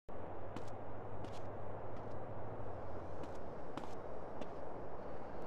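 Footsteps thud quickly on grass as a man runs.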